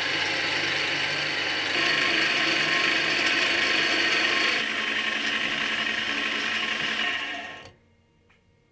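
A drill bores into spinning metal.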